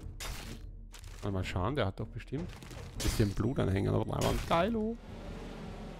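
A blade slashes and thuds into flesh.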